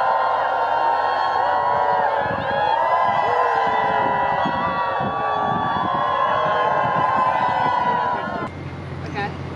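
A crowd of young people cheers and screams loudly.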